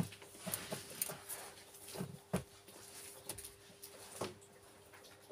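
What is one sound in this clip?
A duckling's beak taps and pecks at grains on a hard floor.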